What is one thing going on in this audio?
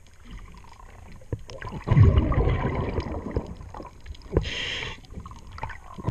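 Water bubbles and gurgles close by underwater.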